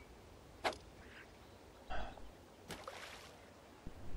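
A fishing line whirs off a reel during a cast.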